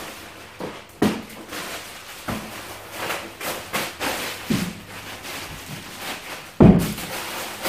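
Items thud onto a counter.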